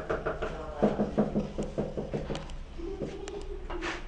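A trowel taps on tiles.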